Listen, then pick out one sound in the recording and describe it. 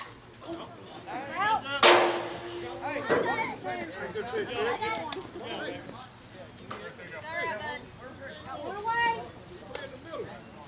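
Women and men shout and cheer outdoors.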